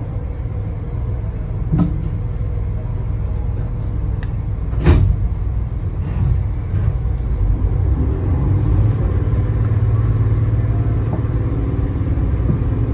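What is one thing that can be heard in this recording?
A train engine hums and rumbles low and steadily.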